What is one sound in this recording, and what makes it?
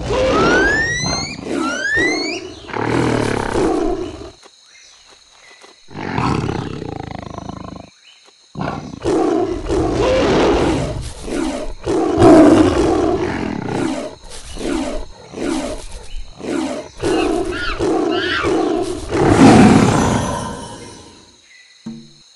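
A big cat snarls and roars during a fight.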